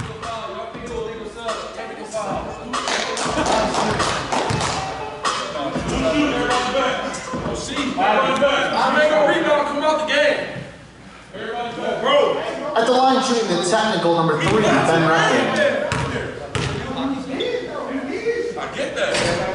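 Young men call out and talk in a large echoing hall.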